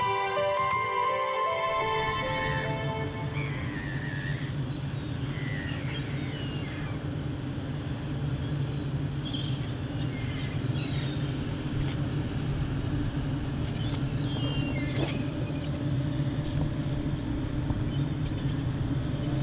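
Water laps gently against a stone edge.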